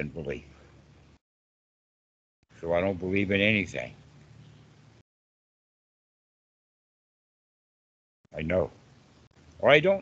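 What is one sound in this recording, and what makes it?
An elderly man speaks with animation over an online call, in short bursts.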